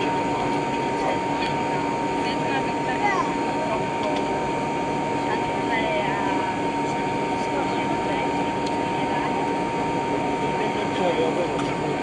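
Jet engines hum steadily from inside an aircraft cabin as the plane taxis.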